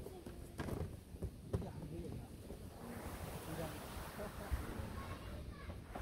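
Canvas drags across dry grass.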